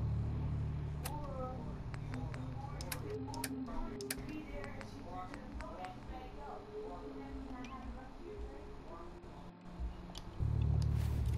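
Menu selections click softly, one after another.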